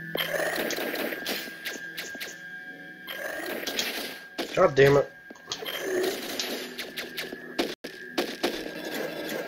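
Electronic laser shots fire in quick bursts.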